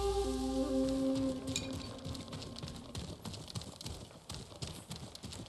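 Footsteps patter quickly up wooden steps.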